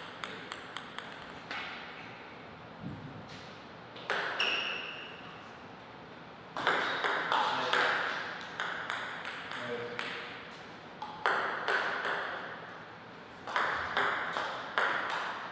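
A ping-pong ball clicks sharply off paddles and the table in a quick rally.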